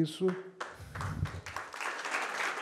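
A man speaks warmly through a microphone.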